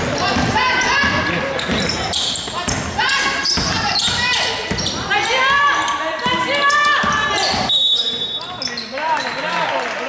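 Sneakers squeak sharply on a court in an echoing gym.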